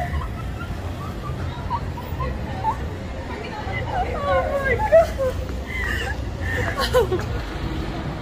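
Young women laugh loudly close by.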